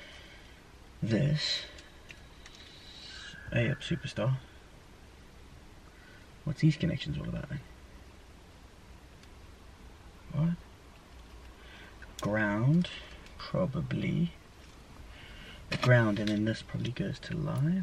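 A young man talks calmly close by, in short bursts.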